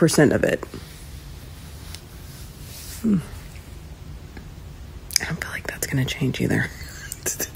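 A woman speaks casually and close up, with pauses.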